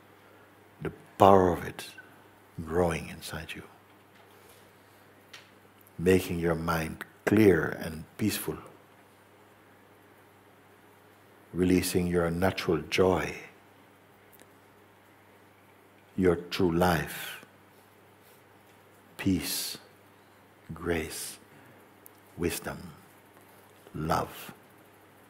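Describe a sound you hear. A middle-aged man speaks slowly and calmly into a close microphone, with long pauses.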